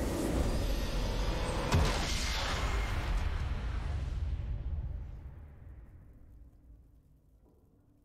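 A triumphant game fanfare swells loudly and then slowly fades away.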